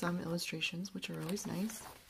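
Book pages riffle as a hand flips through them.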